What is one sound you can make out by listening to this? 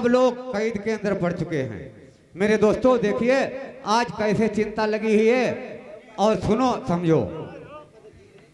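A young man sings loudly into a microphone through a loudspeaker.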